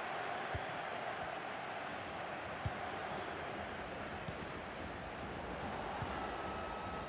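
A football is kicked with a short, dull thud, now and then.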